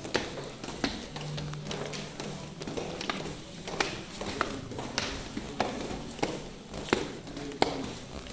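Footsteps thud and scuff on hard stairs, in a room with a slight echo.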